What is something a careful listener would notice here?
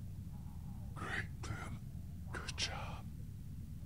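A man speaks calmly and gently.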